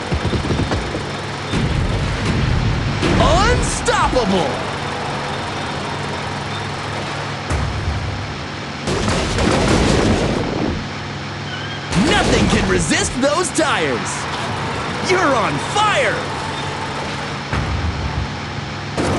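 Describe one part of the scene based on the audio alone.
A monster truck engine roars steadily.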